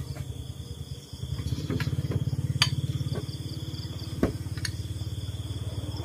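A bowl knocks as it is set down on a floor.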